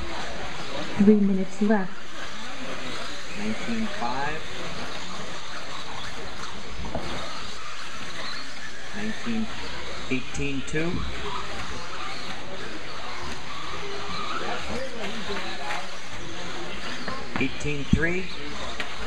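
Racing car tyres crunch and thud as the cars land from jumps.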